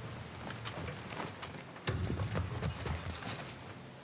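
Footsteps creak softly on wooden boards.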